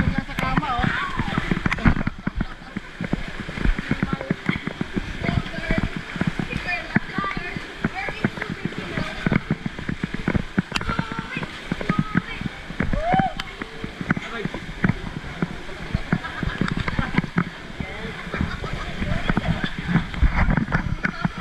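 Water splashes and churns loudly around floating tubes.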